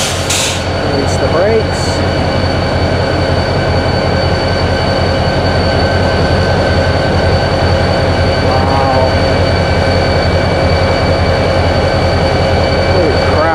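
Train wheels roll slowly along the rails.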